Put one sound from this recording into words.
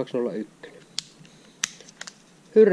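A fishing reel's side plate clicks open.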